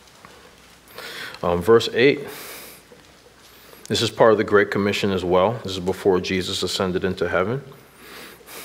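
A man speaks slowly and solemnly into a microphone, in a room with a slight echo.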